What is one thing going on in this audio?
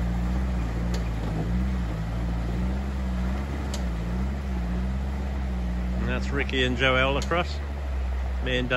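A small toy car's motor whirs as it drives through shallow water.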